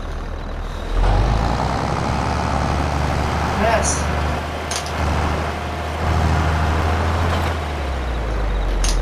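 A tractor engine revs up as the tractor drives off.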